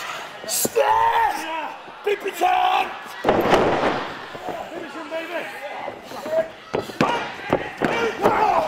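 Bodies slam and thud heavily on a mat.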